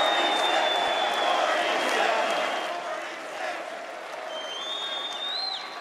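A large crowd cheers and shouts in a big arena.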